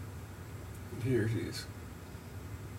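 A young man speaks briefly and calmly, close by.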